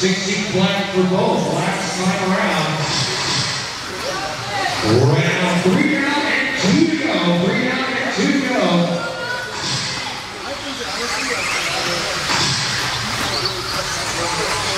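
Small electric model cars whine as they race around a track.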